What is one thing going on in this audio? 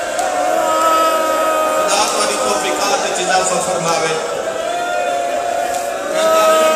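A man chants loudly through a microphone and loudspeakers in an echoing hall.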